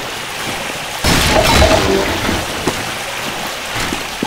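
Water rushes and splashes loudly nearby.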